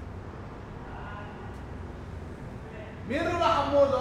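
A young man's footsteps tap on a hard floor.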